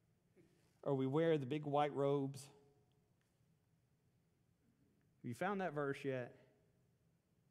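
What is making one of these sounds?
A middle-aged man speaks calmly through a microphone in an echoing hall, pausing between phrases.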